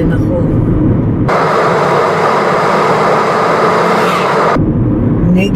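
A car engine hums steadily with road noise from the tyres.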